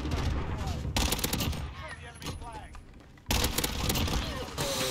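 Gunfire bursts loudly from a game.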